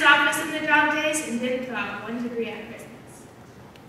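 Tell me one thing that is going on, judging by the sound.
A young woman speaks clearly on a stage, a little distant.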